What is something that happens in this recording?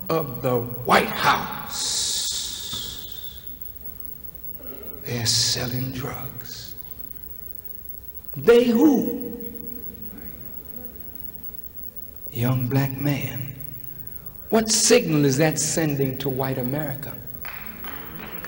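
A man speaks forcefully into a microphone, in bursts with pauses, in a large echoing hall.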